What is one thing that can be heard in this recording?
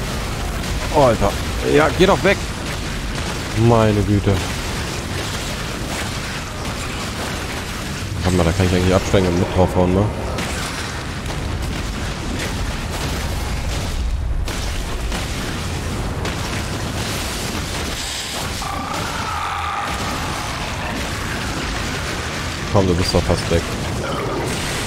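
A huge creature lets out loud, rising cries.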